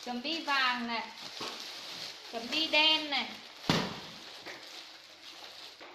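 Fabric rustles and flaps as clothes are shaken.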